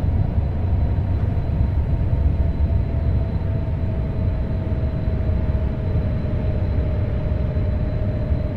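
A train's motor hums with a slowly falling whine.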